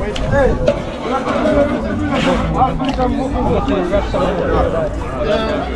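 Several men talk and chatter nearby outdoors.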